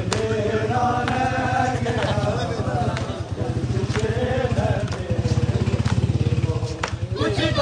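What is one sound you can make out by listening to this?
A crowd of men chants loudly together outdoors.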